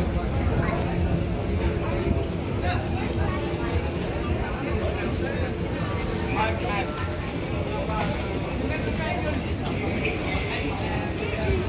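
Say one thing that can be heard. A crowd of people chatter nearby outdoors, with many overlapping voices.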